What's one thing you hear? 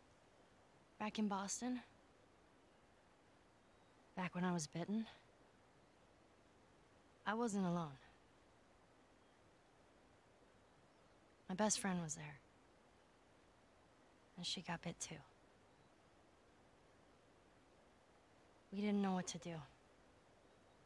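A young girl speaks softly in short, halting phrases with long pauses between them.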